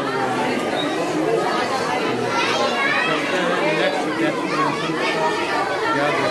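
A crowd chatters all around in a large echoing hall.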